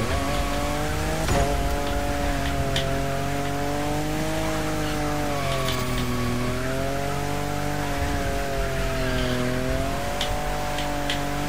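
A racing car engine roars steadily, its pitch rising and dipping as it shifts and drifts.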